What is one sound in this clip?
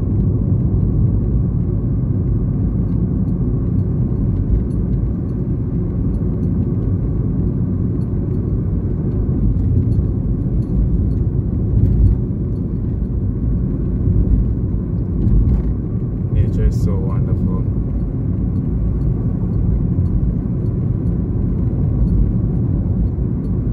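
A car engine rumbles steadily as it drives along a bumpy dirt road.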